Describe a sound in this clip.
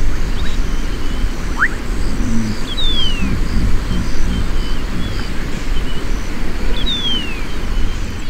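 Hippos plod heavily through grass.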